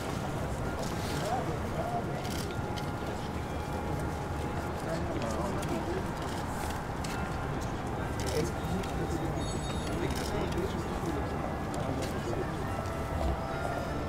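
Several men and women chat quietly nearby, outdoors.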